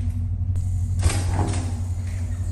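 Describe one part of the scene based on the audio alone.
A door opens with a click.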